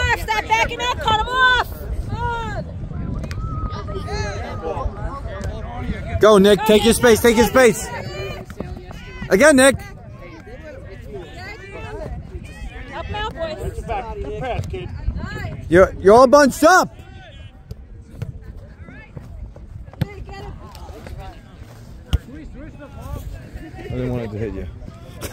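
Teenage boys shout and call out to each other outdoors.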